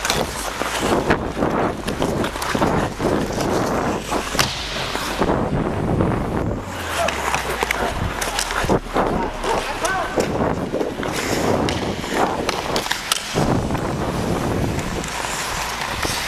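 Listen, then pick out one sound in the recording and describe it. Skate blades scrape and carve on ice close by.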